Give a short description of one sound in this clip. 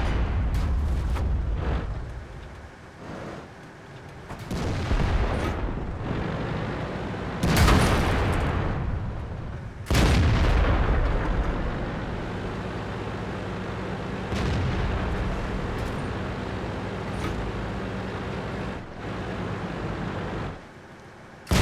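A tank engine rumbles and tracks clank as the tank drives.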